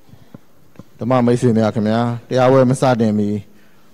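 A middle-aged man speaks slowly and steadily into a nearby microphone, in a drawn-out, sing-song voice.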